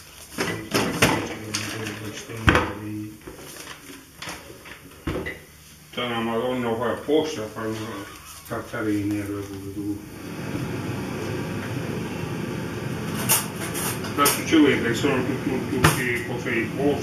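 Pots and utensils clatter and knock.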